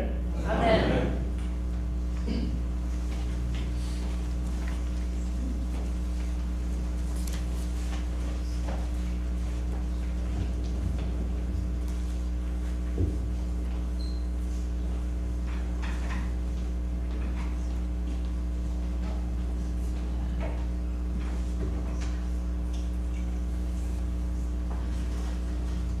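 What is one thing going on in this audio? People shuffle and move about quietly in a large echoing hall.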